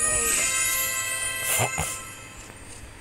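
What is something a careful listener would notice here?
A short game jingle plays with bright chiming tones.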